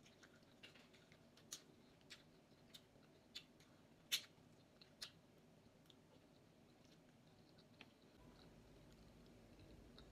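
A woman chews food close up with soft, wet mouth sounds.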